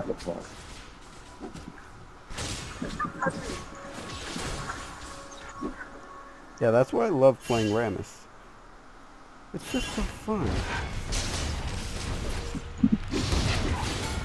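Game spell blasts and weapon clashes sound in quick bursts during a fight.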